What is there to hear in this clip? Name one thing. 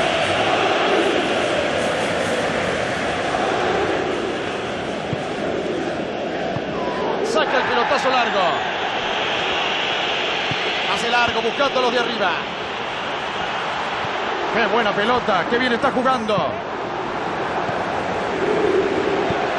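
A stadium crowd roars steadily throughout.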